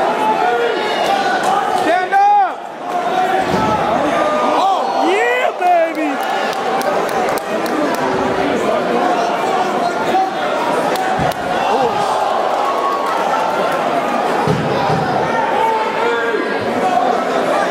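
Punches thud against a fighter's body on the mat.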